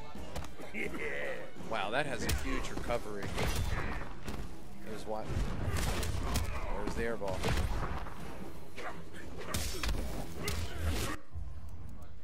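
Punches and kicks thud and smack in a fast video game fight.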